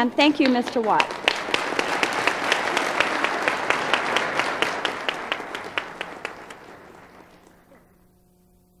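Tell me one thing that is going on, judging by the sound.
A woman claps her hands in applause that slowly fades.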